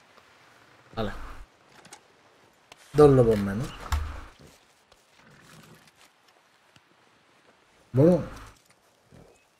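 A knife cuts and tears through an animal's hide.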